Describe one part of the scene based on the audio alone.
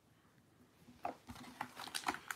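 Cards rustle and slide against each other.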